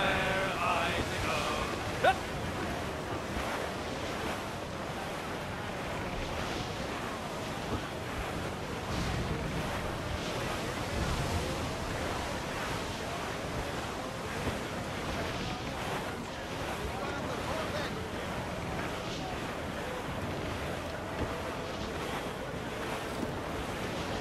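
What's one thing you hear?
Waves rush and splash against a ship's hull.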